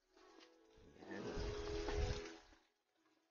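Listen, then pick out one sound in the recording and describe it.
Plastic bags of water crinkle as they are handled.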